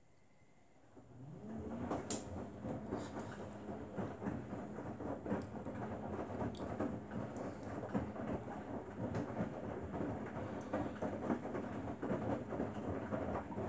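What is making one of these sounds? A front-loading washing machine's drum motor starts up and hums.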